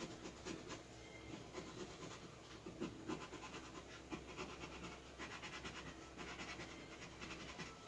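A coin scratches rapidly across a lottery ticket.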